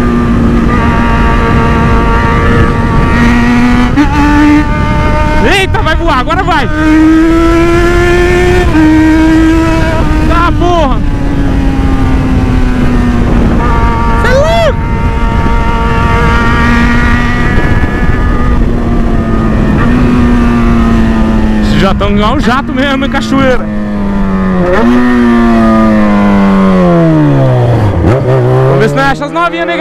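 A motorcycle engine hums steadily and revs up and down through the gears.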